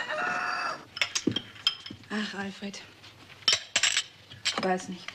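A spoon clinks against a china cup.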